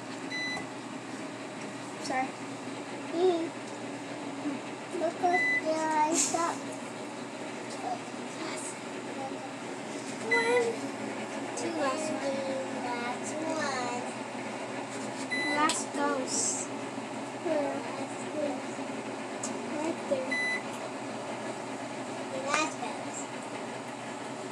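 Young children talk and chatter excitedly close by.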